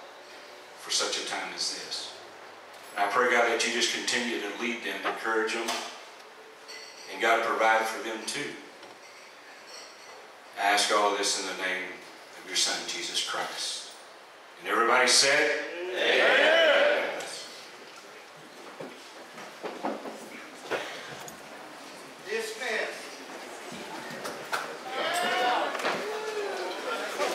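A man sings loudly through loudspeakers.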